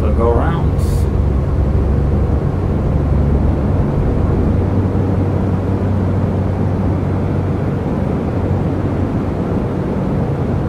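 A propeller aircraft engine drones steadily through loudspeakers.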